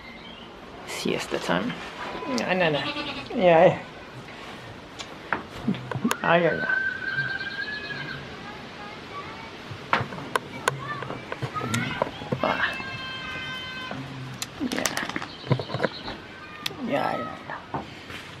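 Goats bleat loudly nearby.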